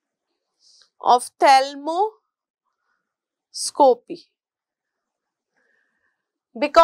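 A woman speaks calmly into a close microphone, in short bursts with pauses.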